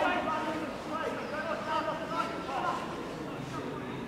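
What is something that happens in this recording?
A man on the sideline shouts instructions loudly.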